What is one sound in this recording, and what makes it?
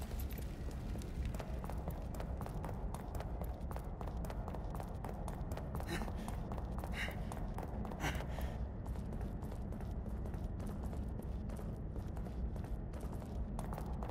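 Footsteps tread on stone in a hollow, echoing tunnel.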